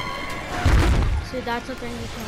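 A gun fires a loud burst.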